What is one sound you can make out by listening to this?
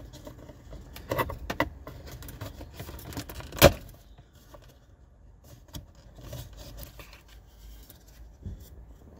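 Plastic clicks and knocks as a trim tool pries at a dashboard.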